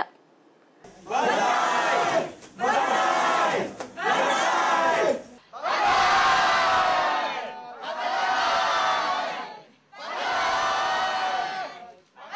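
A crowd of men and women cheer loudly in repeated rhythmic shouts.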